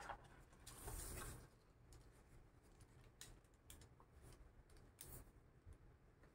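Paper crinkles and rustles under hands.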